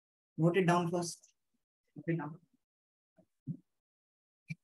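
A man speaks calmly and close to a microphone, in short bursts.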